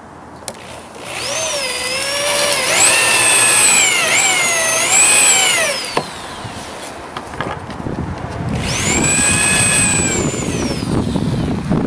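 An electric drill whirs loudly in short bursts, speeding up and winding down.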